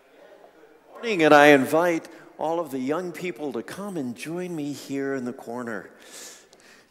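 A man sings in a large echoing hall.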